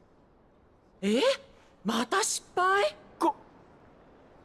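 A woman speaks brightly nearby.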